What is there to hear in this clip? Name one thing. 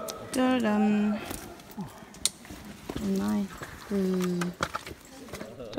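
Boots squelch in thick mud.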